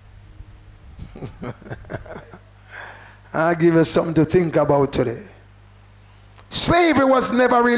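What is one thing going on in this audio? A man preaches loudly and with animation through a microphone.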